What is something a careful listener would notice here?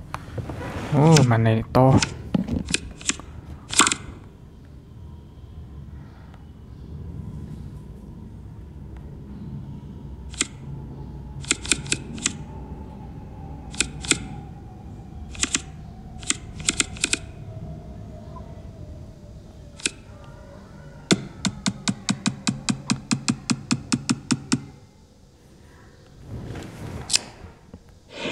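A mobile game plays short chiming blips through a tablet's small speaker.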